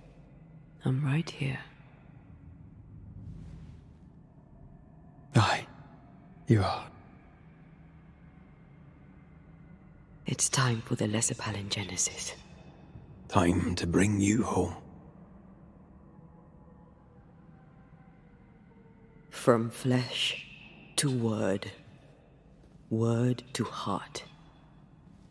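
A woman speaks softly and calmly, close by.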